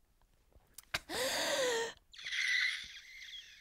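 A young woman shrieks with excitement.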